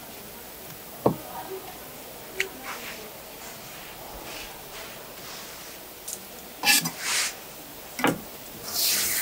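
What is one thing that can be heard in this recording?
A knife knocks against a plastic cutting board.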